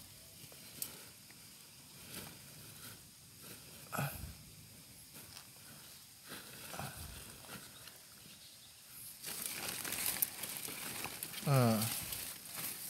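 A hand rustles through dry leaves and plastic sheeting.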